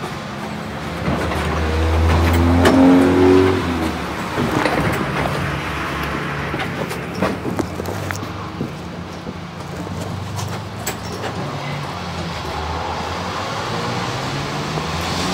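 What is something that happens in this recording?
Road traffic rumbles past nearby, with engines swelling and fading.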